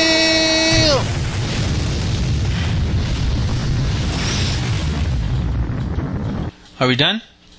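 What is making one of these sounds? A huge magical blast roars and rumbles.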